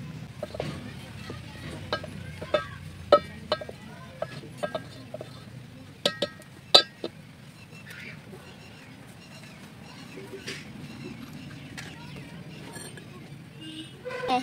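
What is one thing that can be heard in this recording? Sticks of firewood knock and clatter.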